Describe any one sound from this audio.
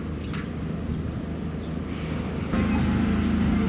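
A personal watercraft engine whines across the water.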